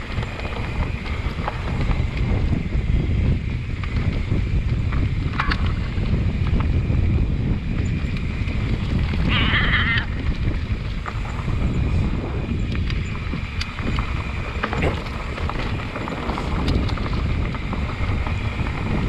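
Wind rushes loudly past a rider outdoors.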